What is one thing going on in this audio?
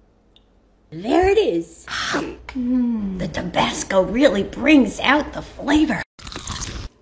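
An elderly woman talks with animation, close by.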